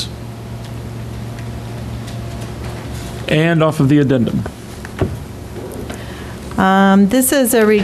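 Papers rustle as pages are turned.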